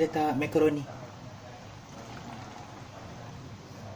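Dry macaroni pours into a metal pan.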